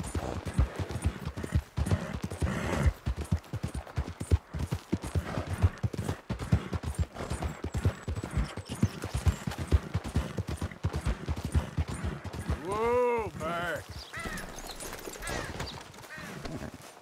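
Horse hooves pound steadily on a dirt trail.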